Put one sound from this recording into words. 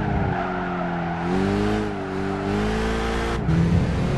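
Tyres screech through tight corners.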